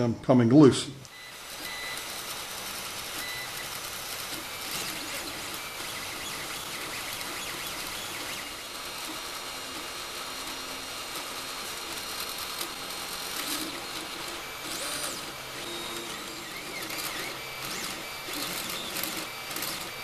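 A 3D printer's motors whir and buzz steadily as the print head moves.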